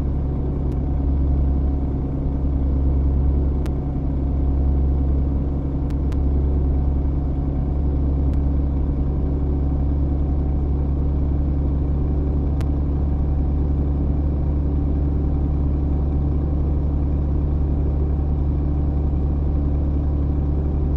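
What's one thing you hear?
A simulated diesel truck engine drones while cruising at highway speed.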